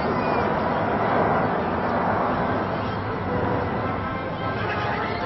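Jet engines roar loudly overhead as several planes fly past together.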